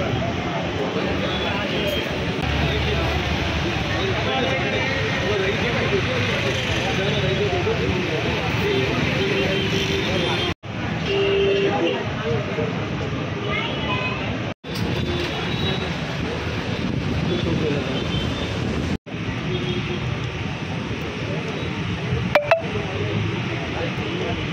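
A crowd of men and women chatters in the background.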